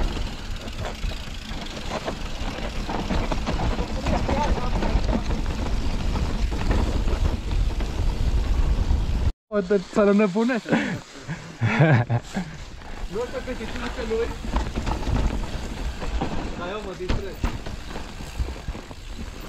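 Bicycle tyres roll and crunch over dry leaves and dirt.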